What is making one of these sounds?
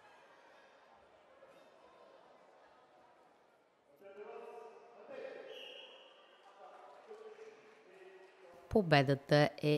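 A crowd murmurs in a large hall.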